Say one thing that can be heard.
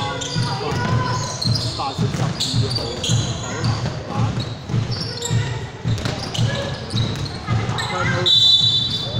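A basketball bounces on a hardwood court in a large echoing gym.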